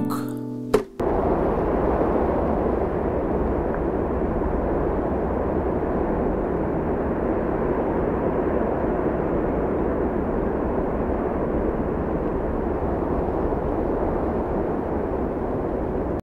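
Wind blows steadily across a wide open space outdoors.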